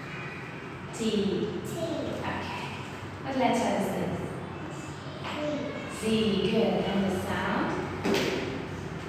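A young woman speaks slowly and clearly up close.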